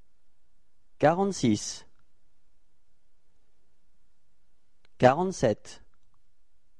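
A young man speaks two short phrases calmly and clearly, close to a microphone.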